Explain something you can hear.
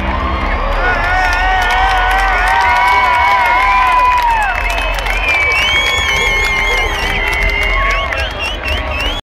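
Crowd members cheer and whistle.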